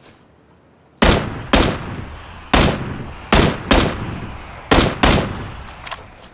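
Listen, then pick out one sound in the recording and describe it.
Rifle shots ring out one after another, each echoing away.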